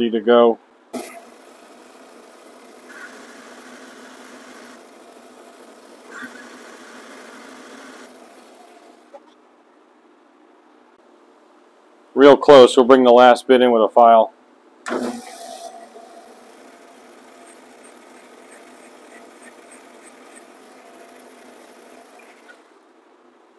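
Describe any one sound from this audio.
A metal lathe hums steadily as it spins and cuts.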